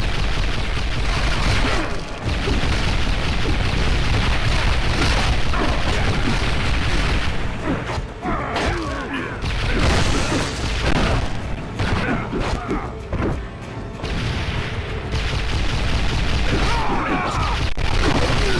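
Metal claws slash and strike with sharp swishing hits.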